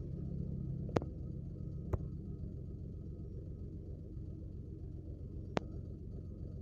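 Short electronic clicks sound now and then.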